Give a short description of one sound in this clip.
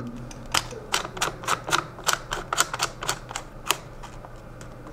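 Plastic parts click and snap as a stock is adjusted.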